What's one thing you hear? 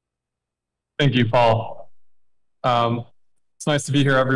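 A second man speaks calmly over an online call.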